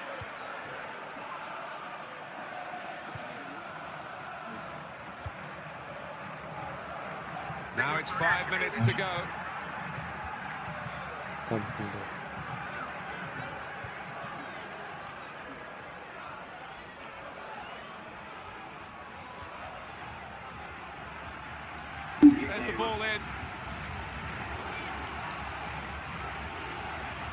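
A stadium crowd murmurs steadily throughout.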